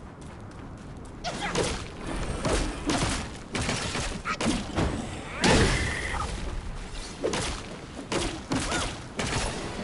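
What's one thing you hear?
A staff whooshes through the air.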